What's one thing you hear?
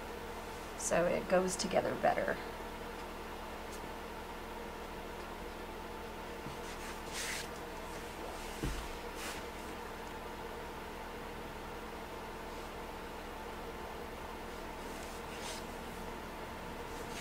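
A paintbrush softly brushes across a painted surface.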